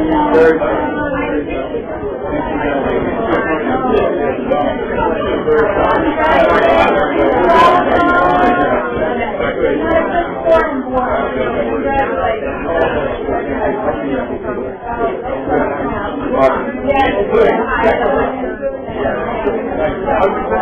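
A crowd of men and women chat and greet one another at once, close by.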